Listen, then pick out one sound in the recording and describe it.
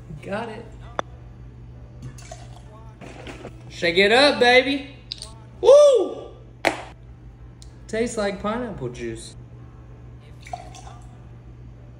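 Liquid pours into a metal cup.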